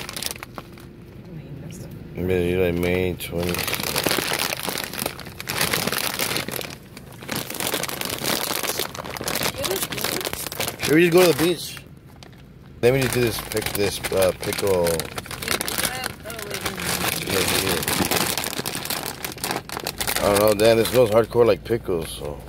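A plastic snack bag crinkles and rustles in a hand.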